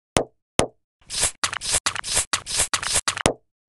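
Metal cans crunch and crumple in quick bursts.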